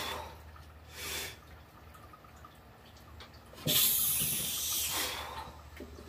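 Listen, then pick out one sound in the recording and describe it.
A man breathes out hard and loudly close by.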